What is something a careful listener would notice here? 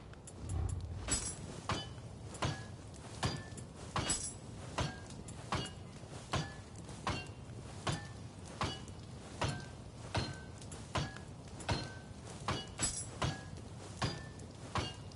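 Menu selection sounds tick in quick succession.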